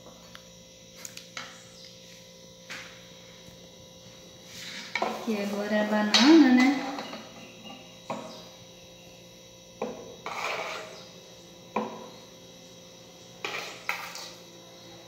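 A metal spoon clinks and scrapes against a glass cup.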